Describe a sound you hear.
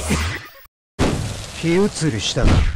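Flames burst and roar.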